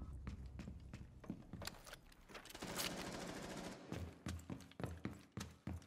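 Footsteps thud steadily.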